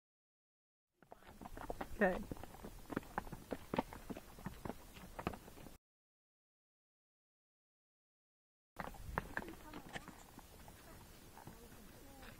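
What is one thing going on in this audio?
Horse hooves thud on a dirt trail.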